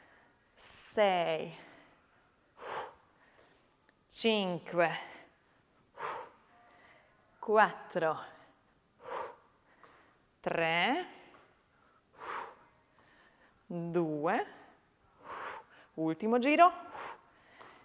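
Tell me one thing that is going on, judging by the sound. A young woman calls out loudly and briskly in short bursts.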